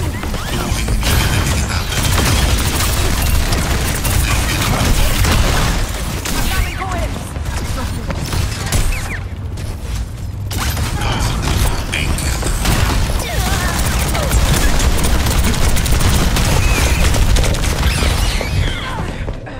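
Guns fire in rapid bursts with loud bangs.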